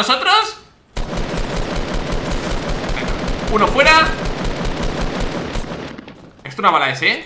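Automatic gunfire from a video game rattles.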